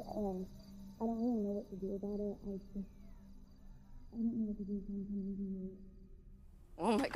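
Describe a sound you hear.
A teenage girl speaks with emotion up close.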